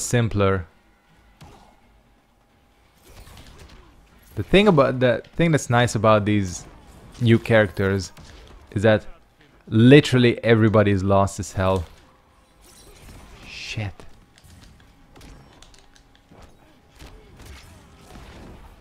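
Blows thud and crack in a video game fight.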